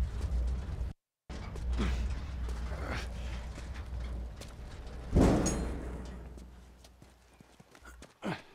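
A heavy metal bin scrapes and rumbles as it is pushed across the ground.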